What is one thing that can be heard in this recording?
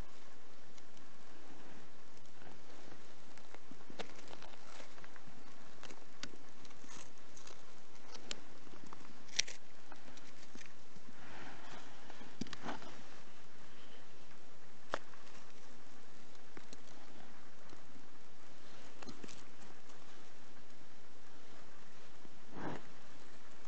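Gloved fingers scrape and dig through damp soil close by.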